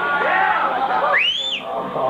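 A man sings into a microphone.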